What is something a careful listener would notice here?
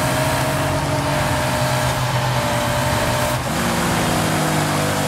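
A racing car engine roars at high revs.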